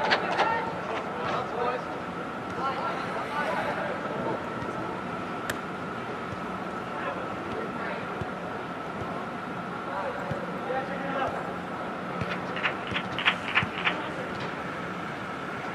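Young players shout and call out to each other across a large echoing indoor hall.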